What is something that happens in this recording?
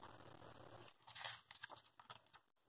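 A page of a book turns with a soft rustle.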